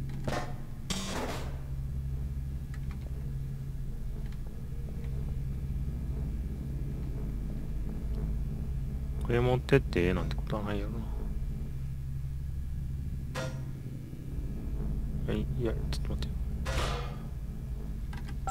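A held device hums steadily with a low electric drone.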